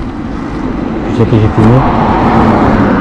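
A motorcycle engine revs up sharply.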